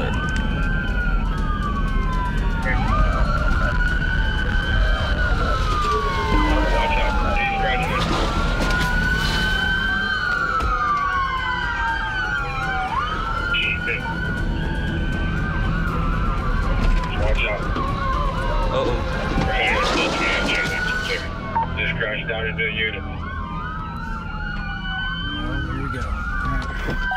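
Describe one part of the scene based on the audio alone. A police siren wails up and down, close by.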